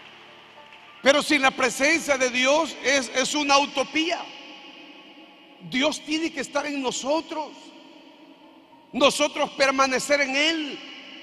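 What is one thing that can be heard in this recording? A middle-aged man preaches forcefully through a microphone, his voice echoing in a large hall.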